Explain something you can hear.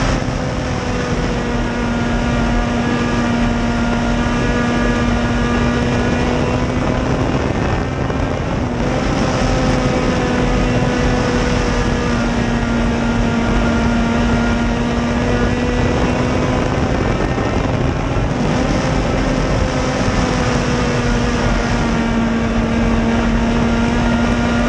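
A race car engine roars loudly up close, its pitch dipping and rising as it goes through turns.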